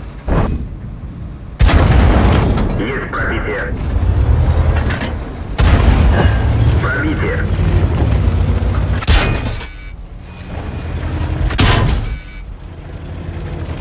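A tank engine rumbles deeply and steadily.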